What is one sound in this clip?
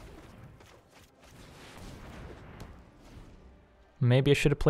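A bright impact effect flares with a rushing swell.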